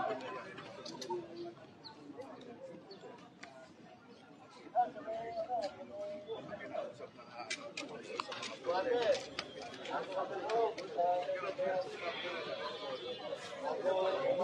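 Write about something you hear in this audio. Several men and women talk over one another outdoors, nearby.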